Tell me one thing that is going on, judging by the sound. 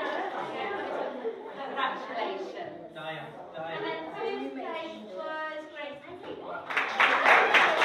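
A woman speaks in a room.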